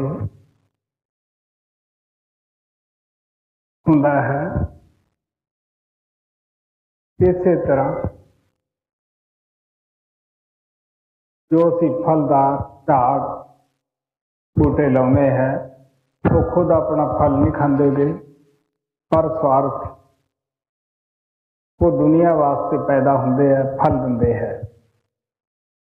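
An elderly man speaks slowly and calmly in short phrases, with long pauses, close to a microphone.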